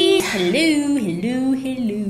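A young woman laughs loudly.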